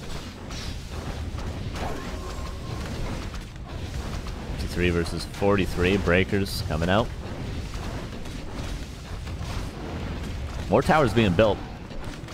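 Swords clash and magic blasts burst in a fantasy battle.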